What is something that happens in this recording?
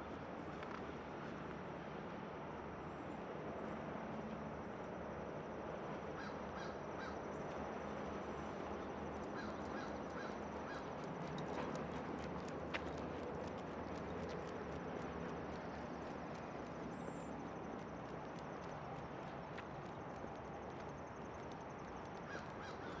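Footsteps scuff steadily on a paved path outdoors.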